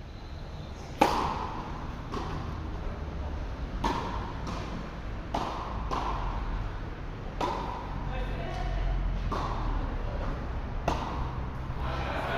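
Tennis rackets strike a ball back and forth in a rally, in a large echoing hall.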